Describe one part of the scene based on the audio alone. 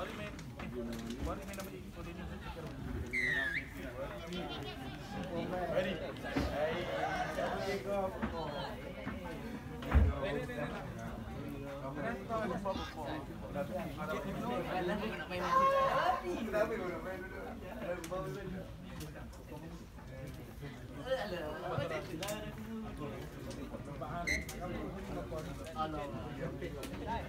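Men talk nearby outdoors, calmly and with pauses.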